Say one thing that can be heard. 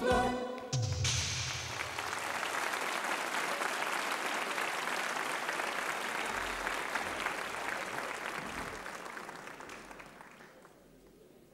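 A large audience applauds and cheers in a big hall.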